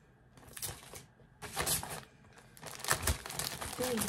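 A plastic mailer bag crinkles and rustles.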